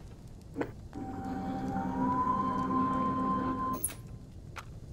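A television plays music and sound effects.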